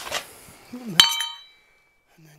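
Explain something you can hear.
A metal object clatters onto concrete and rings briefly.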